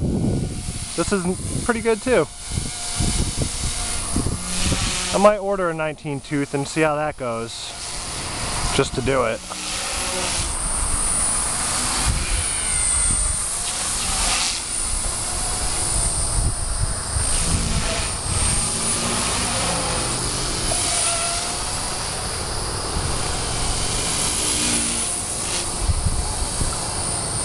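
A model helicopter's motor whines and buzzes overhead.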